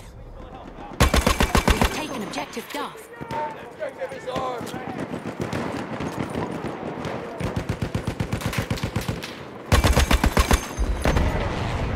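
A machine gun fires rapid, loud bursts close by.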